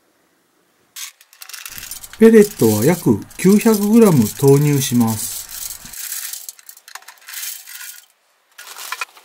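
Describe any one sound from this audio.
Wood pellets pour and rattle into a metal can.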